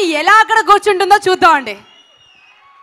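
A woman speaks with animation into a microphone over loudspeakers.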